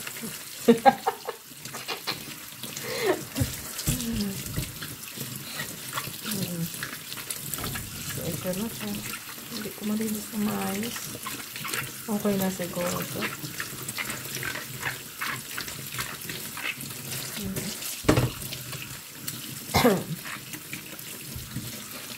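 Tap water runs and splashes into a metal sink.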